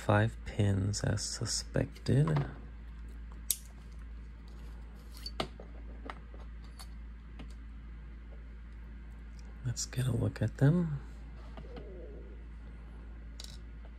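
Small metal lock parts click and tick as they are handled.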